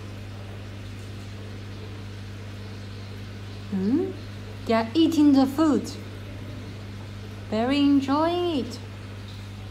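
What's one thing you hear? Air bubbles gurgle softly in a fish tank.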